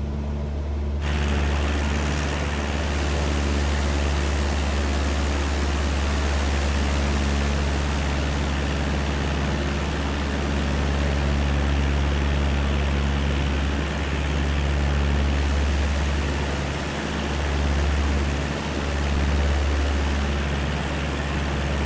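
Wind rushes past the plane.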